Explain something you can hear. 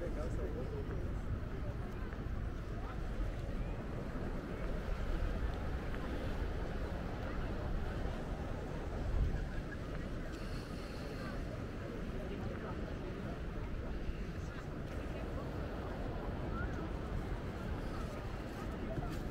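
Wind blows steadily across an open outdoor space.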